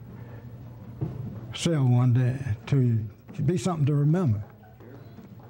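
An elderly man speaks with animation, heard through a microphone in a large room.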